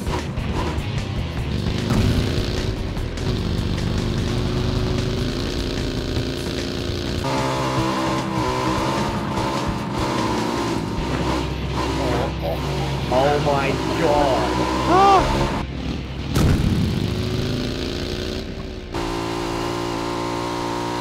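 A motorbike engine roars and revs.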